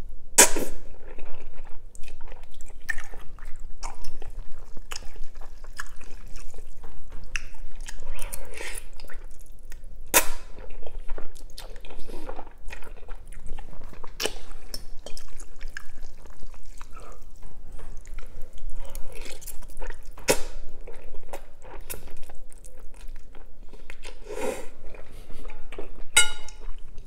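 A man chews wetly with his mouth close by.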